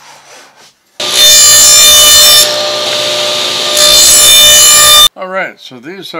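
A table saw whines loudly as it cuts through a board.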